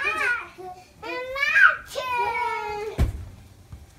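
A young girl laughs loudly.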